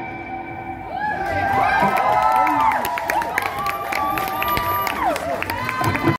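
An electric guitar plays a bending, expressive melody through an amplifier.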